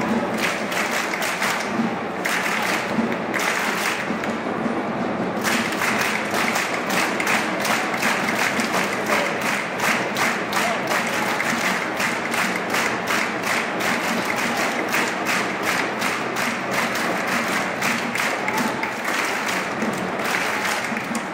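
A large stadium crowd chants and sings steadily in the open air.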